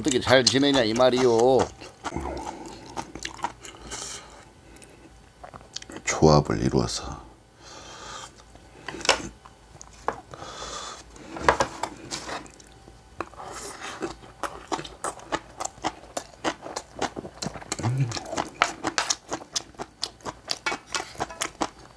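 Chopsticks and a spoon clink against dishes.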